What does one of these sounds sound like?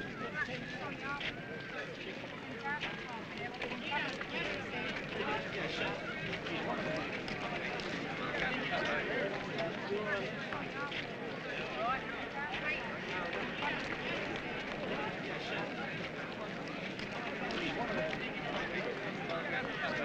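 Many footsteps shuffle along a pavement.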